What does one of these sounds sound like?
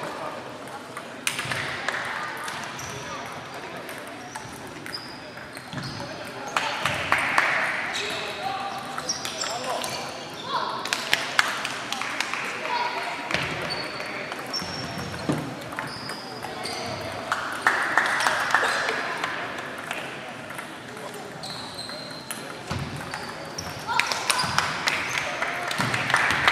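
Table tennis balls click against paddles and tables in quick rallies, echoing in a large hall.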